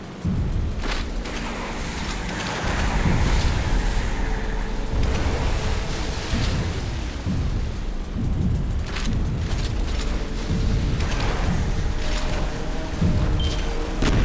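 Water splashes and rushes past.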